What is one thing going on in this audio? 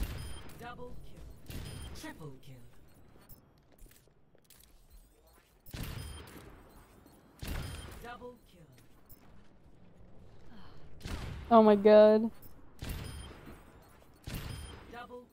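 A heavy gun fires in loud, booming blasts, one every second or two.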